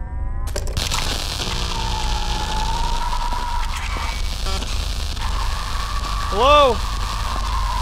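A young man cries out close to a microphone.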